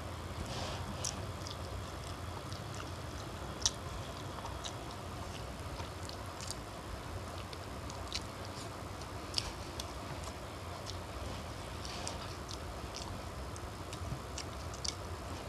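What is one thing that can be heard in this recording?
Eggshells crack and crunch under fingers.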